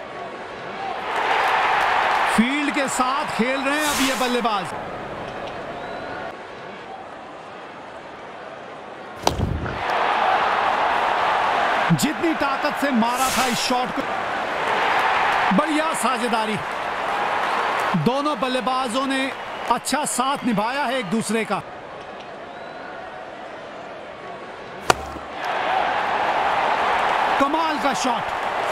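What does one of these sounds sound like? A crowd cheers and roars loudly in a large stadium.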